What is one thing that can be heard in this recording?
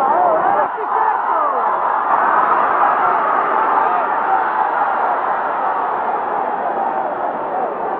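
Men yell and chant excitedly in a crowd.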